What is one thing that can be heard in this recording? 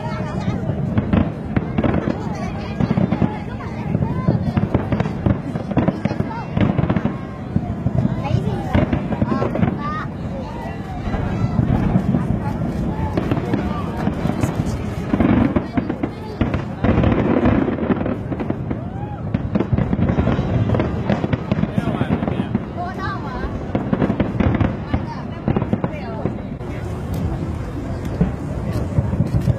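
Fireworks boom and crackle in rapid bursts.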